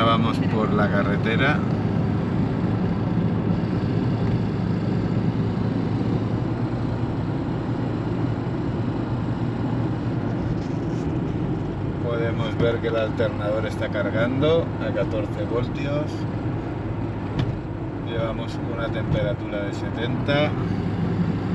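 A car engine hums and rumbles steadily from inside the car.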